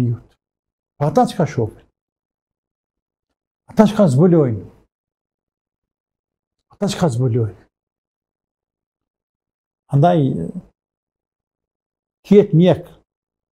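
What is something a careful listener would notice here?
A middle-aged man speaks into a microphone with animation, in short bursts with pauses between them.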